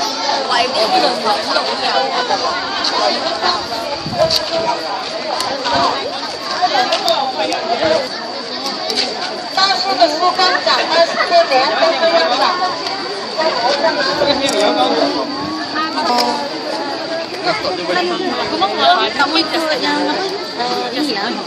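A crowd of children and adults chatters nearby outdoors.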